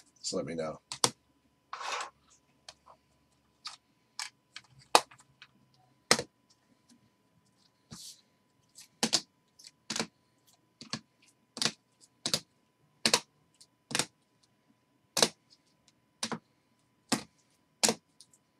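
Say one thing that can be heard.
Plastic card cases clack against each other and onto a table.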